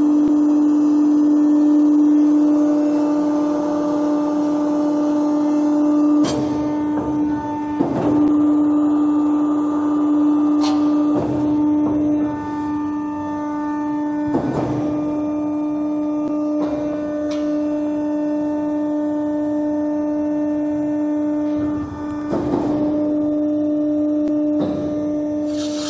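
A machine hums steadily as its heavy rollers turn.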